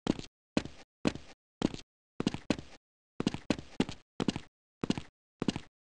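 Footsteps thud on hard ground at a quick, steady pace.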